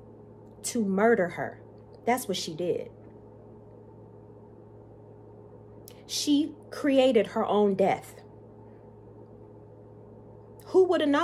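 A woman speaks expressively and close to a microphone, in short bursts with pauses.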